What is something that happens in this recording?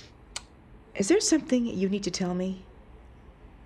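A middle-aged woman speaks calmly and close by.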